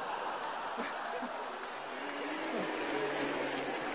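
A man laughs into a microphone.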